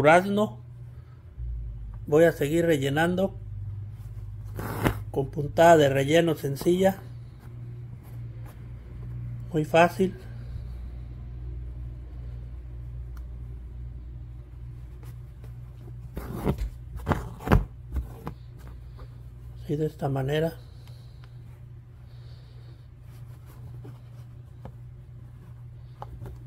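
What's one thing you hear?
Thread rasps softly as it is pulled through cloth.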